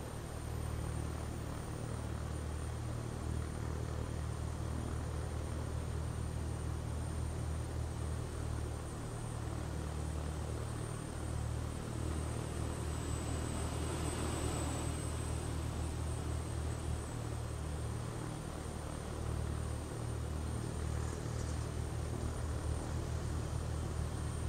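A jet engine hums and rumbles steadily.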